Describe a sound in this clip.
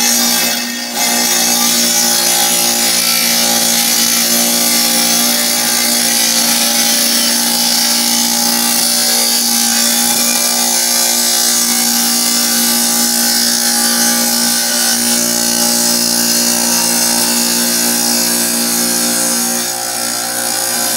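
A saw blade grinds through tile.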